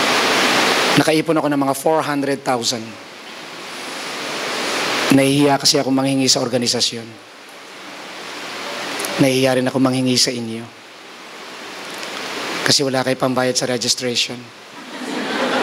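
A man speaks calmly into a microphone in short phrases, heard through loudspeakers.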